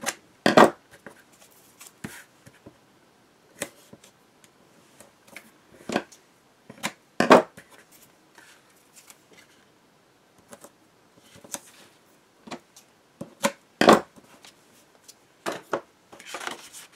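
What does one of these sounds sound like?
Paper rustles and taps against a table.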